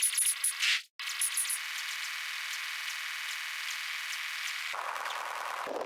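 A flying saucer drones with a steady warbling electronic tone.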